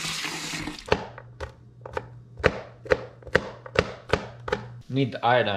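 A knife chops on a cutting board with quick, sharp knocks.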